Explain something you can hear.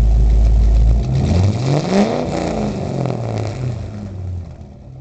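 A car engine revs up and then settles back down.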